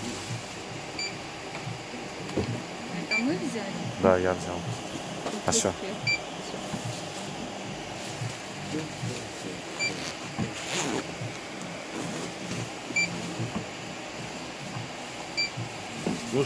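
A checkout scanner beeps as items are scanned.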